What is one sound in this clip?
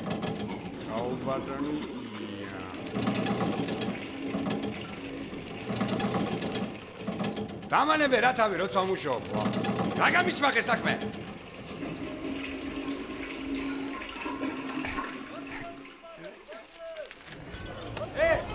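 A man speaks gruffly nearby.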